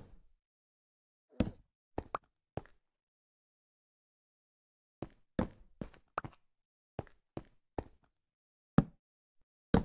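Footsteps tap on stone paving in a video game.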